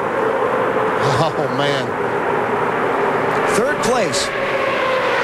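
A race car engine whines past with a rising then falling pitch.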